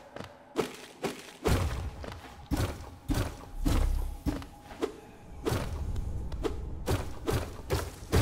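A blade slashes with sharp swishes.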